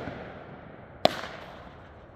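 A firework cake shot launches with a thump.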